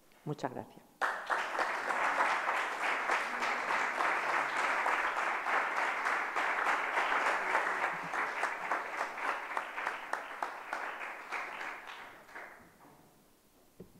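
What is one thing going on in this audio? An audience applauds in an echoing hall.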